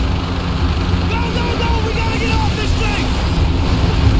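A man shouts urgently over a radio.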